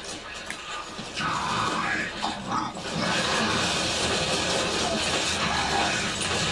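Battle sound effects from a video game play through a television speaker.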